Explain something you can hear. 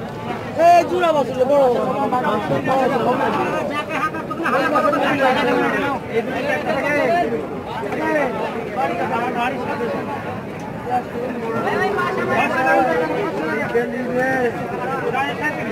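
A crowd of men talk loudly all around, close by.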